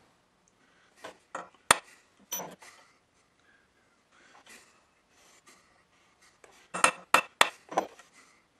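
A hammer taps sharply on metal.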